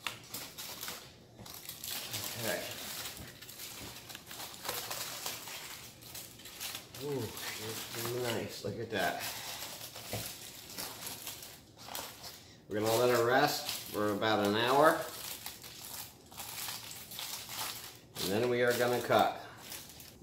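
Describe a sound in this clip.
Aluminium foil crinkles and rustles as hands pull it open.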